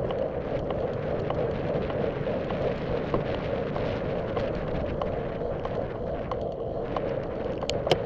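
Bicycle tyres hum and rattle over a paved path.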